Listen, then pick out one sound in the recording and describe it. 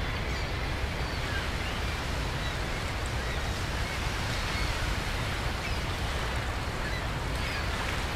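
Water laps and splashes steadily.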